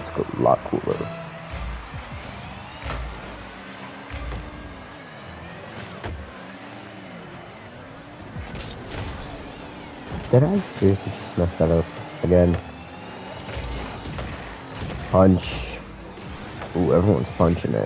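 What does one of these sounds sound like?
A video game car engine roars and whooshes as it boosts.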